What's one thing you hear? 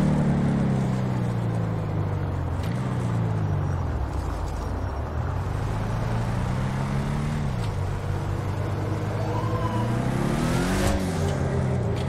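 A car engine rumbles deeply at idle and revs up and down.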